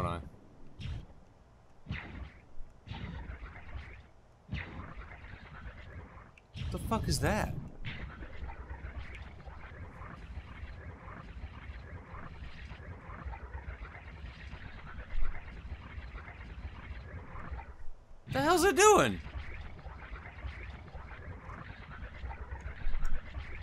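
A man talks into a close microphone in short bursts.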